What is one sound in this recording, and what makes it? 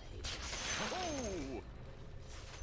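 A magic spell bursts with a shimmering, sweeping whoosh.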